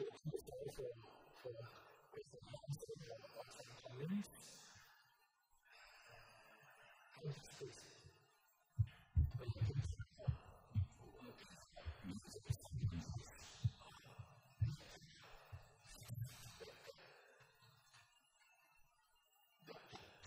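A middle-aged man speaks calmly into a microphone, heard over loudspeakers in a large room.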